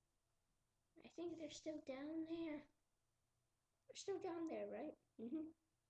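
A child talks close by in a playful voice.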